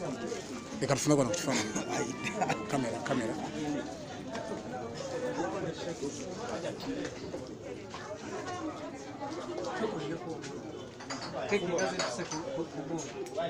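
Several adults talk at once nearby, with a lively crowd murmur around them.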